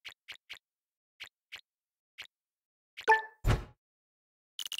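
Short game blips sound as pieces are collected.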